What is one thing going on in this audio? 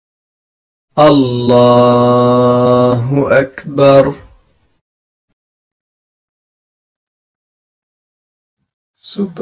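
A man chants a long, drawn-out call in a steady, sung voice, heard close and clearly.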